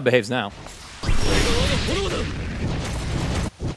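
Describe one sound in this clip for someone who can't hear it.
Flames whoosh and roar.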